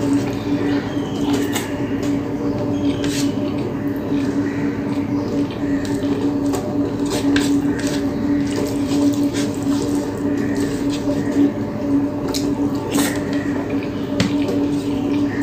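A woman eats a mouthful of rice with wet chewing sounds.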